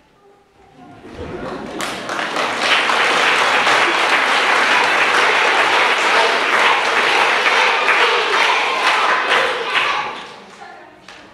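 An audience of children laughs and cheers loudly.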